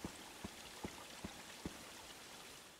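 Footsteps echo on a stone floor.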